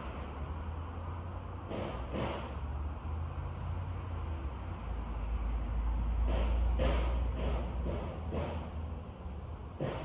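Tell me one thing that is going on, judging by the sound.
Wind blows steadily outdoors, rustling through the trees.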